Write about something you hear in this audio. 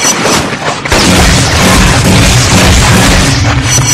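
An electric blast crackles and bursts.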